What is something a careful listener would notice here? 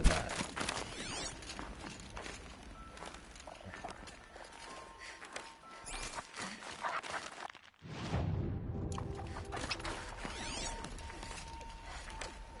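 An electronic scanner pulses with a shimmering chime.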